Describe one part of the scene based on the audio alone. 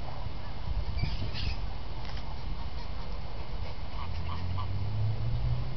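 Geese honk nearby.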